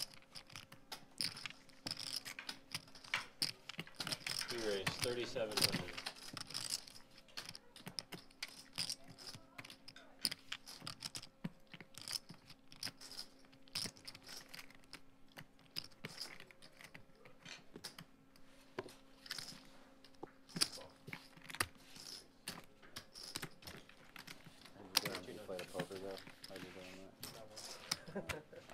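Poker chips click and clatter as they are shuffled and stacked.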